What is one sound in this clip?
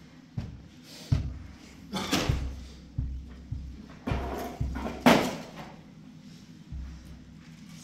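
Knocks and thumps of things being moved and set down on the floor.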